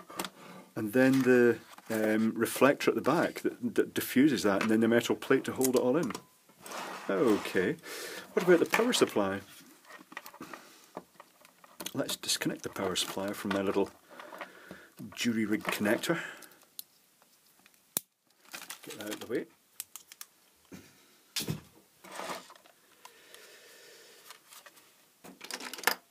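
Plastic parts click and clatter as hands handle them.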